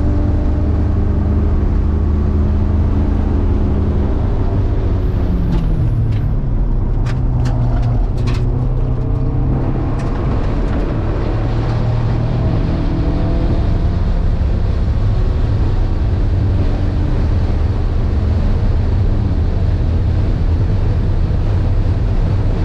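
A car engine roars loudly up close, heard from inside the car.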